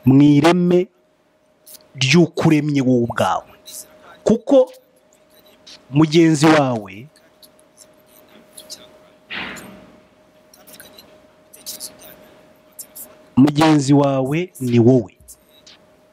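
A man speaks calmly into a microphone, close by, in short bursts with pauses.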